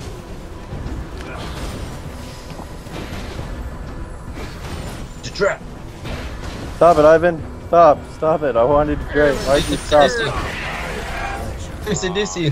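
Magic blasts and blows crackle and thud during a fight.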